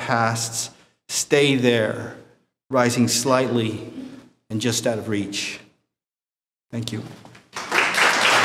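A man reads aloud calmly into a microphone.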